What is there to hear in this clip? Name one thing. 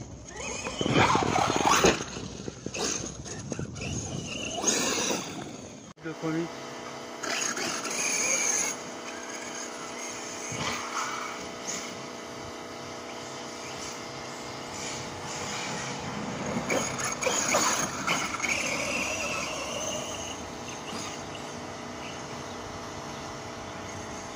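A small electric motor on a toy car whines as the car drives over grass.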